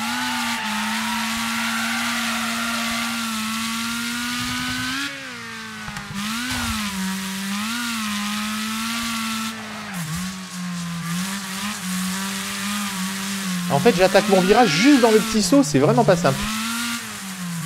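A racing car engine drones and revs up and down steadily.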